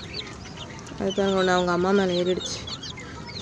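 A hen calls out with a drawn, wavering cry.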